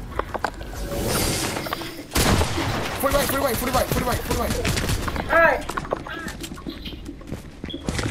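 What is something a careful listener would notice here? Wooden and brick walls snap into place with quick clacks.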